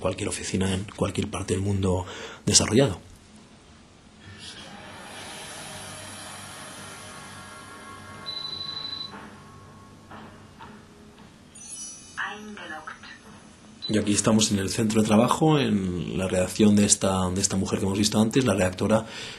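A woman speaks calmly through a television loudspeaker.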